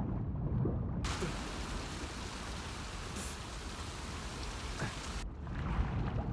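Water splashes and churns as a swimmer strokes along the surface.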